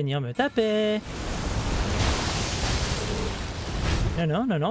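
A magical shimmer swells and rings out.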